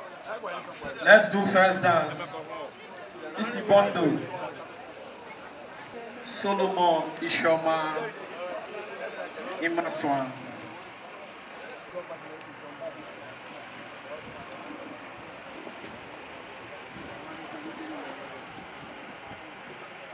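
A crowd murmurs softly outdoors.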